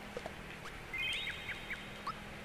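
A short electronic chime rings.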